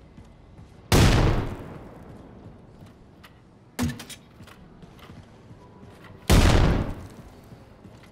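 A heavy gun fires with loud booming blasts that ring out.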